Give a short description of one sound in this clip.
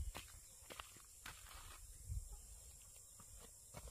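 A wooden plank knocks and scrapes against the ground.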